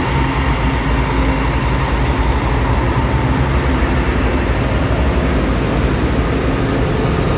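Diesel locomotives rumble loudly past close by.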